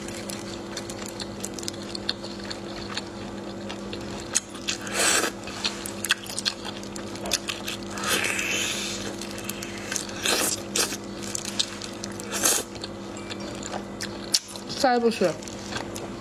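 A woman chews wetly.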